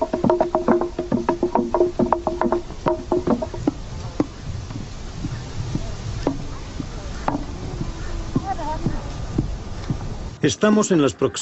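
Wooden pestles pound grain in mortars with steady thuds.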